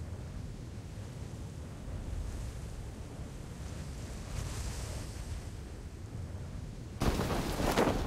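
Wind rushes steadily during a parachute descent.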